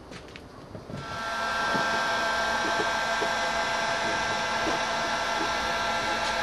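A heat gun blows with a steady whirring roar.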